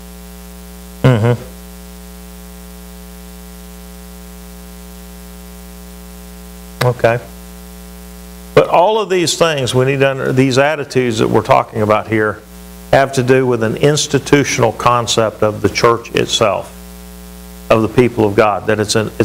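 A middle-aged man speaks with animation through a clip-on microphone.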